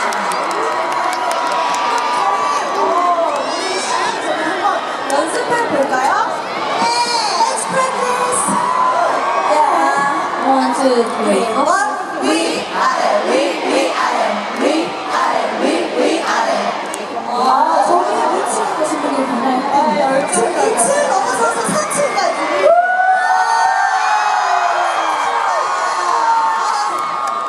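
A large crowd screams and cheers loudly in a big open-air venue.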